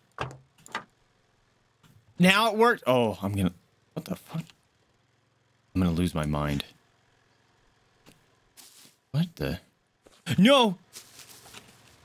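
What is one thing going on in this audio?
A young man talks animatedly and loudly into a close microphone, in short bursts.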